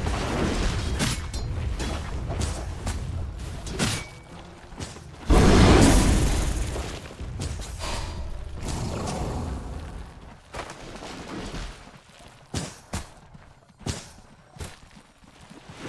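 Magical blasts and impacts burst in quick bursts.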